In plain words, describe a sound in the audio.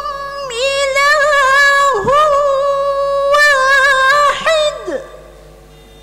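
A young woman chants melodically into a microphone, holding long notes.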